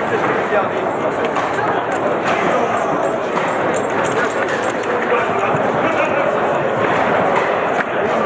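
Foosball rods clack and a ball knocks against a table.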